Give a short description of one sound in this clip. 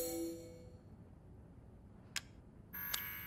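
A soft menu chime sounds.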